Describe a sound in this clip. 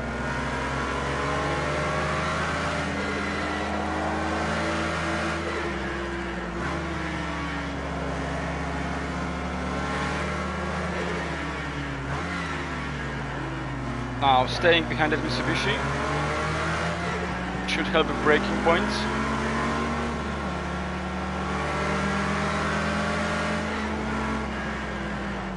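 A car engine drones and revs up and down steadily.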